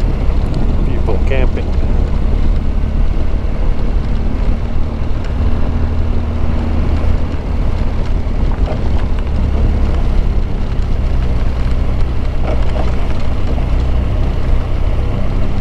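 Wind rumbles loudly against the rider.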